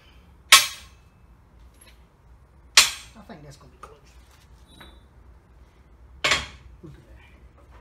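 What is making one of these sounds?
Heavy metal parts clank sharply against a press.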